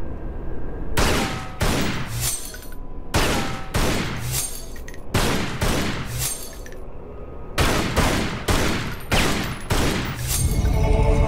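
Pistol shots ring out in quick bursts, echoing.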